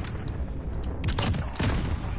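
A bolt-action sniper rifle fires a single loud shot.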